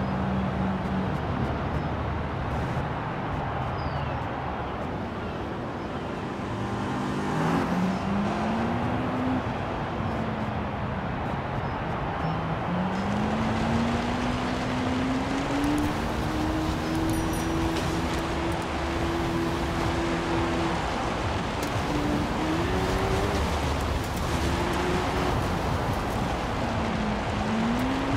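A car engine revs up and down, rising in pitch as it speeds up.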